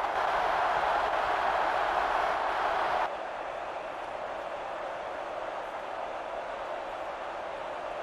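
A large crowd roars in a stadium, loudly at first and then more quietly.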